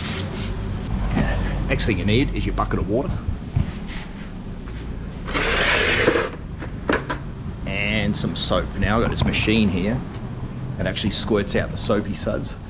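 A middle-aged man talks casually, close up.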